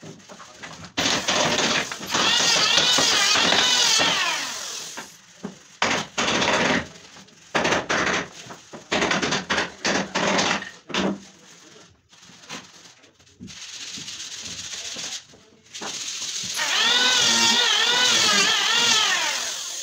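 A power tool whirs loudly and whines as its speed rises and falls.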